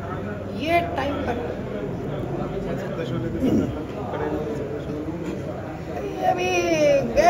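A middle-aged woman speaks with emotion into a microphone close by.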